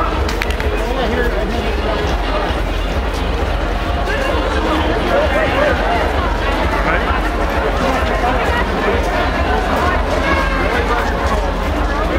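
A large crowd of men and women chatters all around, outdoors.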